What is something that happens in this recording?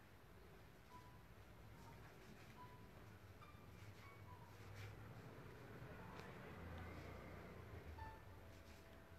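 Bedding rustles softly.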